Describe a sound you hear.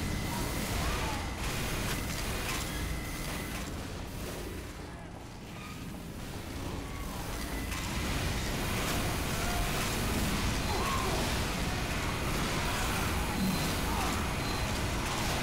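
A rotary machine gun fires in rapid, roaring bursts.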